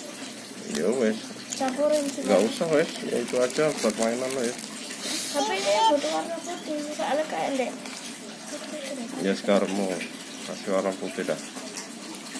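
Fingers squish and squelch soft slime.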